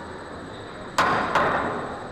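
A cue tip strikes a pool ball with a sharp click.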